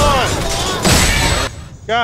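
A loud burst explodes.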